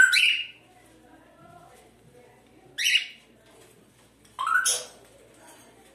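A budgerigar chirps sharply.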